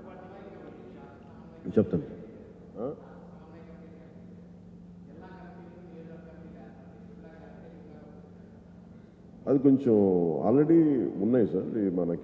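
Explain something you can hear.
A middle-aged man speaks calmly and at length into a microphone.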